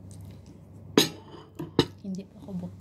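A bowl knocks down onto a hard surface.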